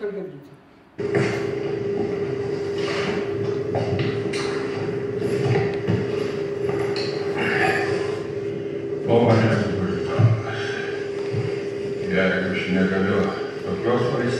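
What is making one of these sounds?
A man and a woman speak dramatically through loudspeakers.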